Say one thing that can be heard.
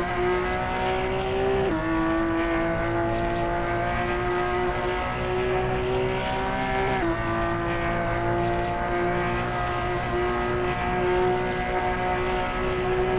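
A sports car engine roars loudly at high revs, dropping in pitch with each gear change.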